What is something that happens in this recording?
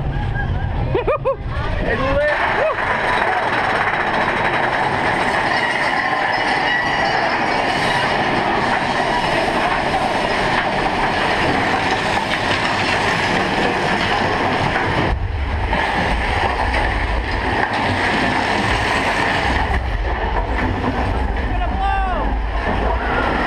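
Riders scream and whoop.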